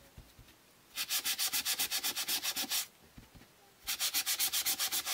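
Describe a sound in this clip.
A sponge dabs rapidly against paper in quick, even bursts.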